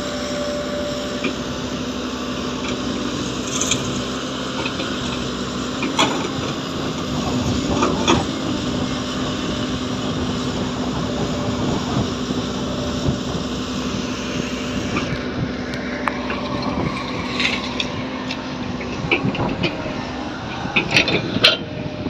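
An excavator engine rumbles steadily nearby.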